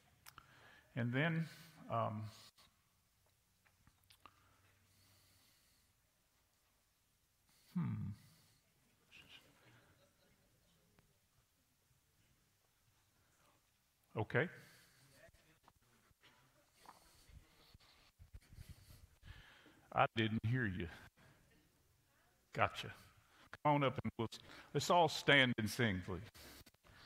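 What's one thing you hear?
A man speaks calmly through a microphone in an echoing hall, with pauses between phrases.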